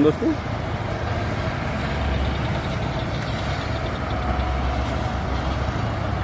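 A heavy truck engine rumbles nearby as it drives slowly.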